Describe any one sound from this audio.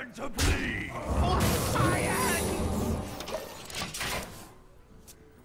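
A magical blast booms and crackles in a game.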